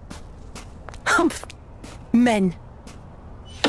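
A woman speaks briefly with a scoffing tone.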